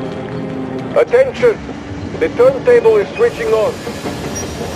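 A young man speaks briefly and animatedly into a close microphone.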